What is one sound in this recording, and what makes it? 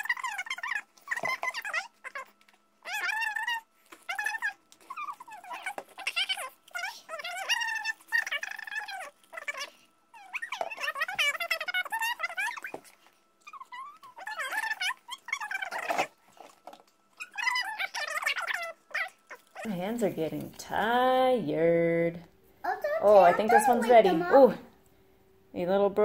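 A young boy talks with animation close by.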